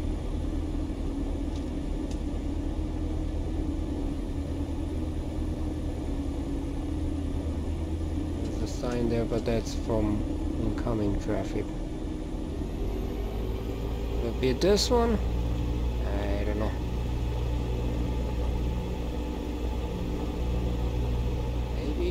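A small plane's propeller engine drones steadily at idle.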